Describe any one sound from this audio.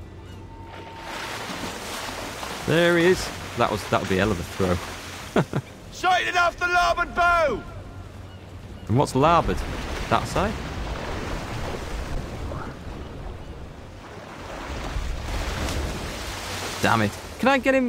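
Waves wash and splash around a small boat.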